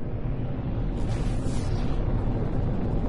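A spaceship engine roars louder as it boosts.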